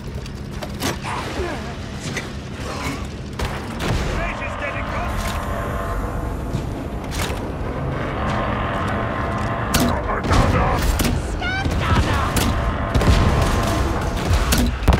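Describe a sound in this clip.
Guns fire in sharp, rapid bursts.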